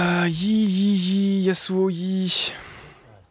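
A young man lets out a long, drawn-out cry close to a microphone.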